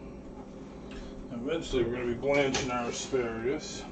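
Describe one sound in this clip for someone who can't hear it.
A metal pot is set down on a stovetop with a clank.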